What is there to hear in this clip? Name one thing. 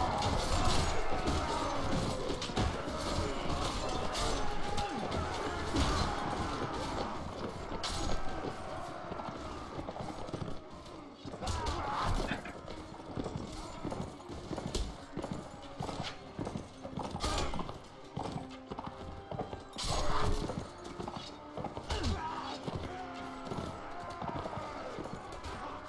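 Swords and shields clash in a battle.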